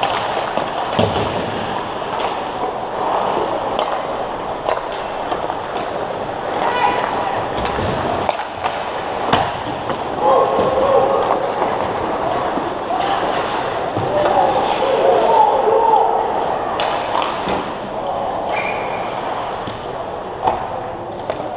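Hockey sticks and a puck clack sharply against the ice.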